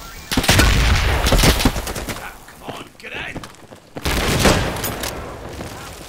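Gunshots ring out in loud, rapid bursts.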